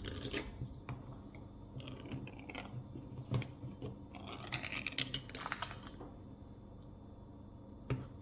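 A metal tin lid is peeled back with scraping and creaking.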